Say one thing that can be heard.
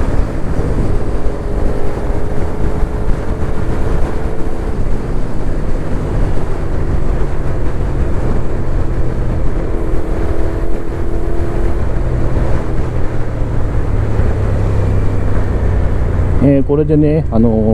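Wind rushes loudly past the rider.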